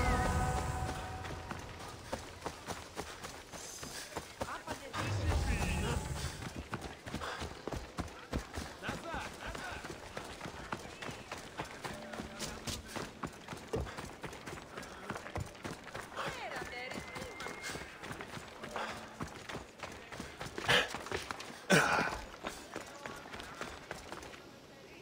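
Footsteps run quickly over grass, dirt and stone.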